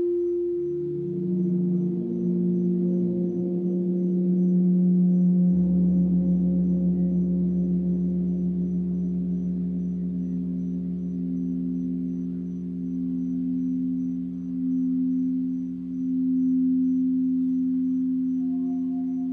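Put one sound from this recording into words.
Several crystal singing bowls ring together in layered, sustained tones that swell and waver.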